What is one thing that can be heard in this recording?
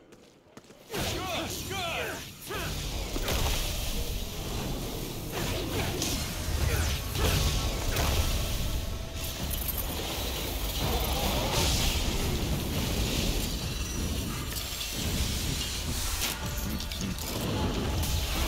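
Magic blasts crackle and boom in rapid bursts.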